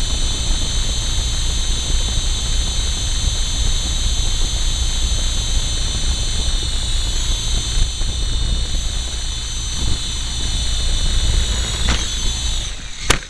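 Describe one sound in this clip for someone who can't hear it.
A small electric radio-controlled helicopter whines close by.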